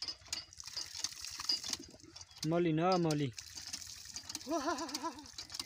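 Water gushes and splashes onto the ground.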